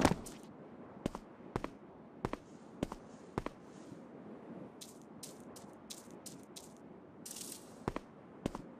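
Footsteps tap on stone at a walking pace.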